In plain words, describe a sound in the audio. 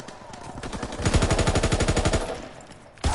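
A machine gun fires a rapid burst of shots.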